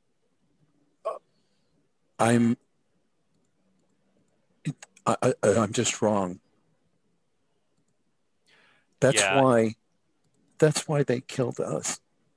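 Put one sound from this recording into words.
A young man speaks over an online call in short bursts.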